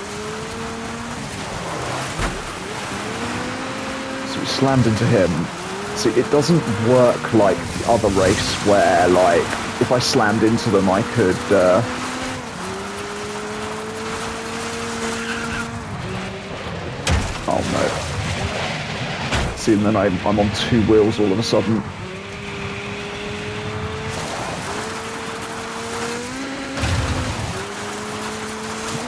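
A buggy engine revs and drones steadily, rising in pitch as it speeds up.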